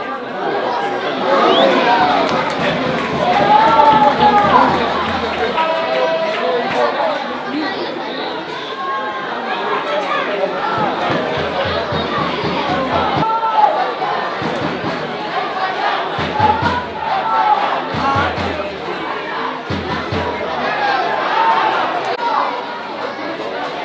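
Spectators chatter and shout outdoors.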